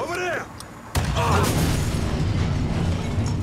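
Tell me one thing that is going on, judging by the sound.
A car explodes with a deep roaring blast.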